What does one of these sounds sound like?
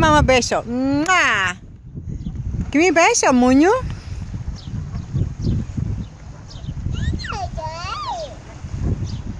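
A toddler girl squeals in a high voice close by.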